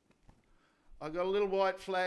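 An elderly man speaks clearly into a microphone.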